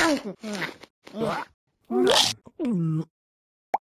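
A cartoon cat munches on a carrot.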